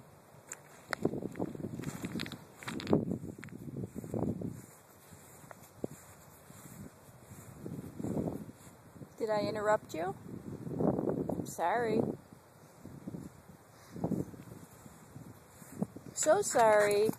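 A dog rolls and wriggles on its back in grass, rustling it.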